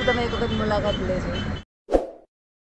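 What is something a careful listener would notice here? A woman speaks cheerfully close by.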